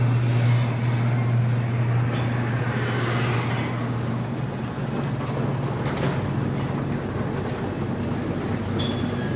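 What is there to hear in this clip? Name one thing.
A car engine idles with a deep, steady rumble indoors.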